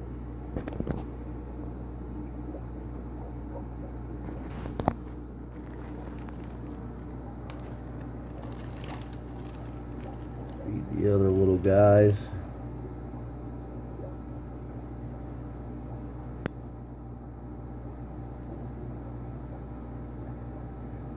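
Air bubbles stream and gurgle steadily through water.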